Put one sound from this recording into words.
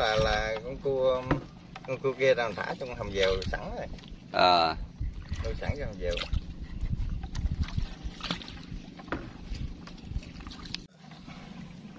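A wooden paddle splashes in water.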